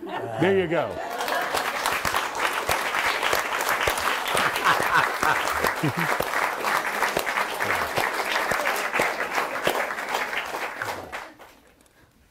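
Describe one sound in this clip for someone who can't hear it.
An audience applauds loudly and steadily.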